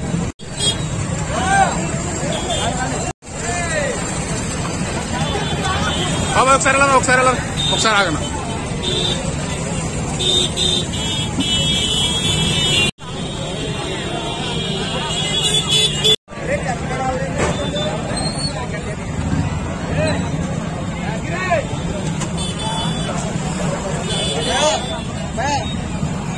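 Men call out loudly close by.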